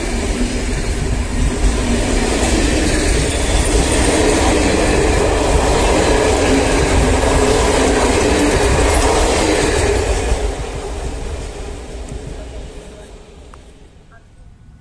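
A passenger train rumbles past close by, its wheels clattering on the rails.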